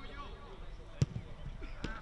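A football is kicked hard with a thud.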